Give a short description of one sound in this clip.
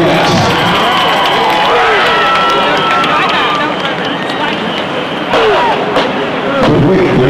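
A large crowd cheers and shouts outdoors in a stadium.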